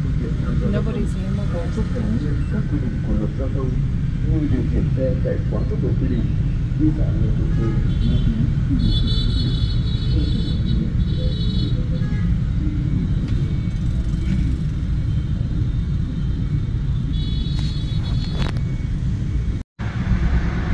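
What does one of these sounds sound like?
Motorbike and car engines rumble steadily in heavy traffic close by.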